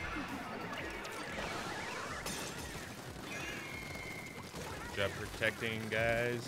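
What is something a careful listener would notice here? Cheerful electronic game sound effects chime and splash.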